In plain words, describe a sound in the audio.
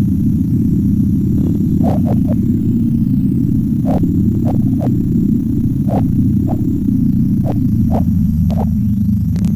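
A small racing car's engine buzzes in a steady low drone.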